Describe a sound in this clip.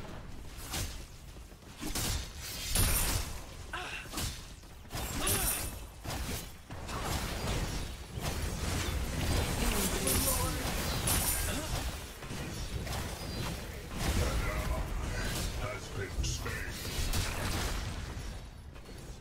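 Swords slash and magic blasts crackle and boom in a fast fight.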